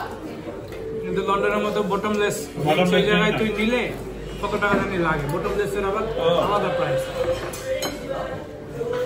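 A second young man talks animatedly nearby.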